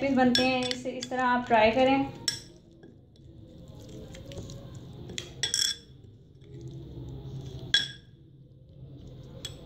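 A metal spoon scrapes and clinks against a glass bowl.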